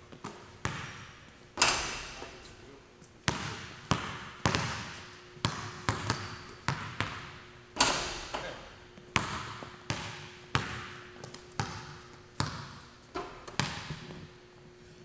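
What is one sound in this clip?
Basketballs bounce on a hard floor, echoing through a large hall.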